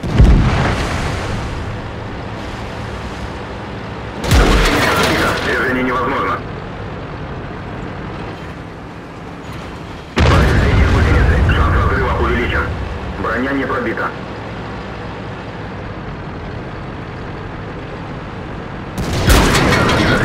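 A heavy cannon fires with loud booms.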